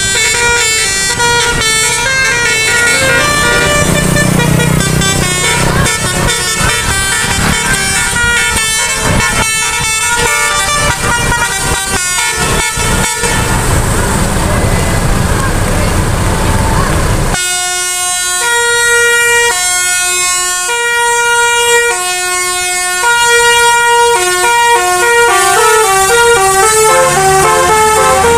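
A bus horn plays a loud musical tune.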